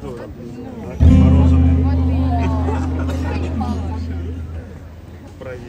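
An acoustic guitar chord rings out loudly over loudspeakers and slowly fades.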